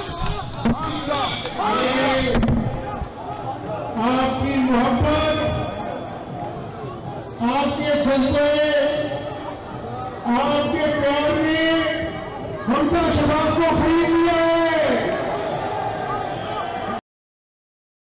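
A man shouts with passion into a microphone, heard through loudspeakers.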